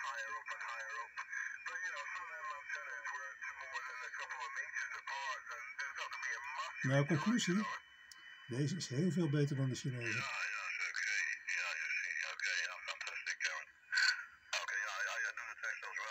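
Voices talk over a radio through a small, tinny loudspeaker, with hiss and crackle.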